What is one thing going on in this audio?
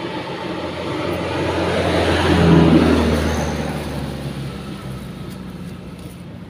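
A truck drives past with a rumbling engine, then fades into the distance.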